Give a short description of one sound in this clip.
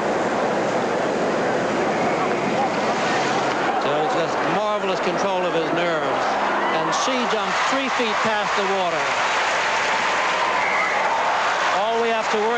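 A large crowd murmurs and cheers outdoors.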